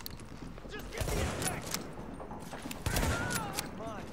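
A rifle fires single loud shots.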